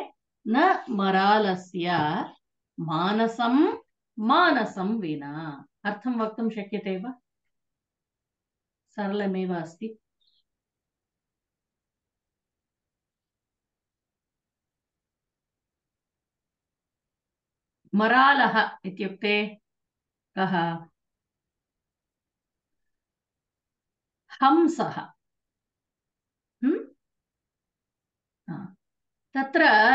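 A woman speaks calmly over an online call, reciting in bursts with pauses.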